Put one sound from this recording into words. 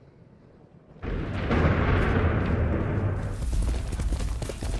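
A horse gallops over soft ground.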